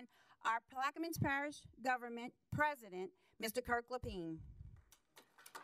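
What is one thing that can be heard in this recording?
A woman speaks with animation into a microphone in an echoing room.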